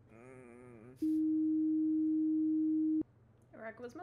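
A steady electronic tone drones, then cuts off sharply.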